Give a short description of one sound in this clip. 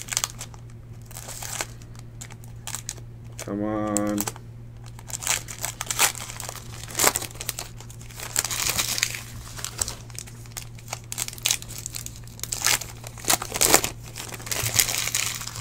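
A foil card wrapper crinkles and tears open.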